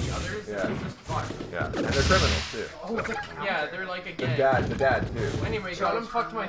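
Video game fighting sound effects play.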